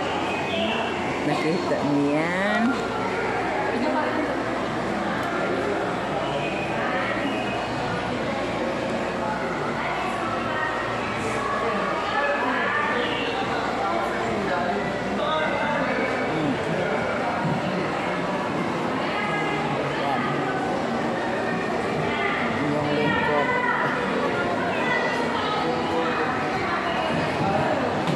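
A crowd of people chatter indoors.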